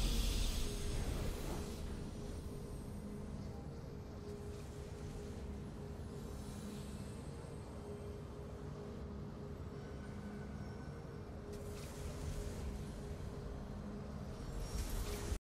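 Soft, steady music plays.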